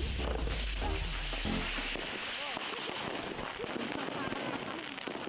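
Fireworks crackle and bang outdoors.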